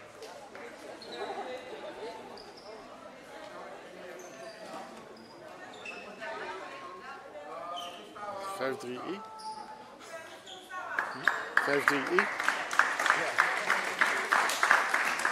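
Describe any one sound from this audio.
Young players call out and talk in a large echoing hall.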